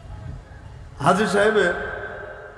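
A man speaks loudly through a microphone, heard through loudspeakers with echo.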